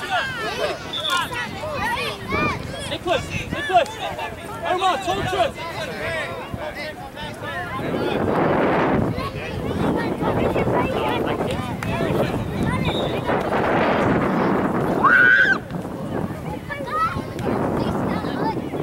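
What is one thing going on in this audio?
Spectators talk and call out from the sideline outdoors.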